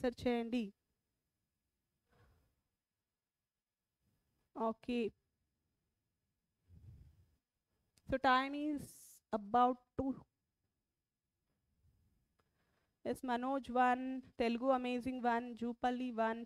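A woman speaks into a close headset microphone, explaining with pauses.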